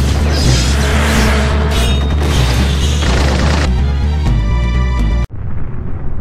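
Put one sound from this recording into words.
Gunfire and explosions roar in a battle.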